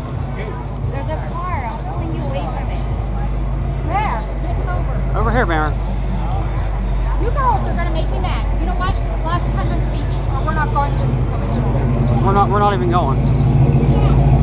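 Nearby women and children talk and call out.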